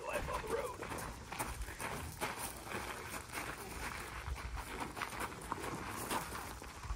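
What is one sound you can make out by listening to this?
Footsteps shuffle and crunch on gravel.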